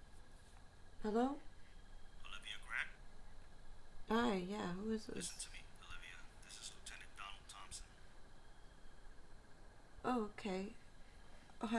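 A young woman speaks softly and anxiously into a phone, close by.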